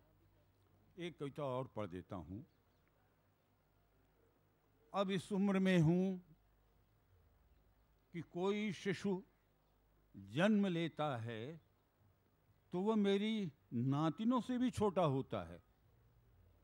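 An elderly man reads out slowly through a microphone, with long pauses.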